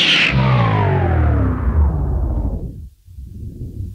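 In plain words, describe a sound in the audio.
Loud electronic music plays from a record and winds down in pitch to a stop.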